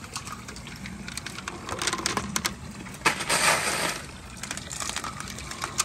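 Glass marbles clink and rattle inside a tube.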